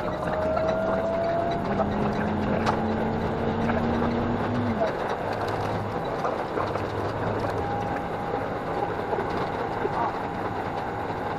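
A train rumbles and rattles steadily along the tracks, heard from inside a carriage.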